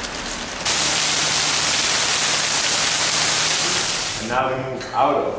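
Heavy rain pours down and splashes on the ground.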